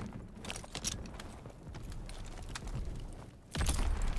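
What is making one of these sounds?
A tank explodes with a loud, deep boom.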